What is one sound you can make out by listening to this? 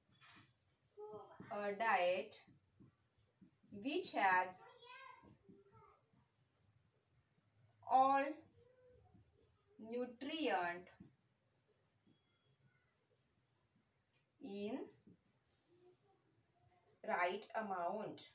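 A young woman speaks calmly and clearly, as if explaining, close by.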